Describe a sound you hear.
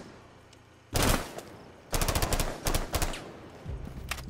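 An assault rifle fires in bursts.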